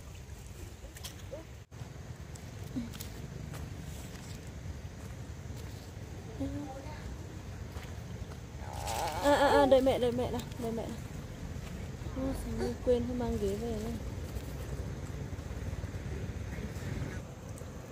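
Hands rustle through leafy fruit.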